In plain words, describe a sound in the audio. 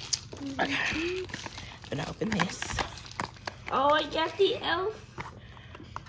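Cardboard rustles and crinkles as small flaps are handled.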